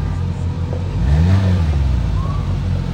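A car engine revs up briefly.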